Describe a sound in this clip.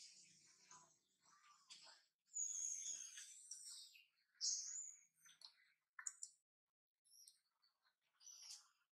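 A baby monkey squeaks and whimpers close by.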